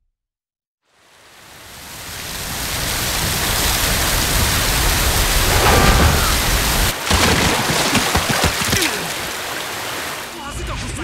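A loud rushing wind roars steadily.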